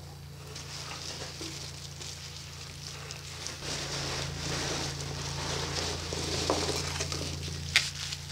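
Bubble wrap crinkles as a parcel is lifted out.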